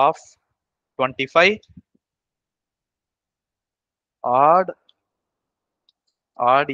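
A man speaks calmly through a headset microphone, in short phrases with pauses.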